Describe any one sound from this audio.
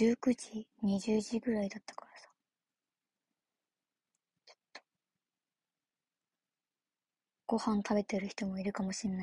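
A young woman talks casually and close by, with pauses.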